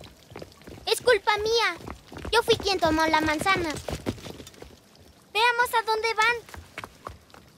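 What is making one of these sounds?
A young boy speaks with feeling, close by.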